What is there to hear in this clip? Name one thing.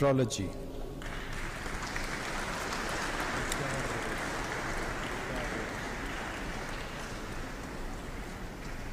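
A crowd applauds steadily in a large echoing hall.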